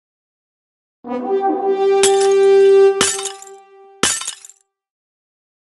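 A cheerful game jingle plays in celebration.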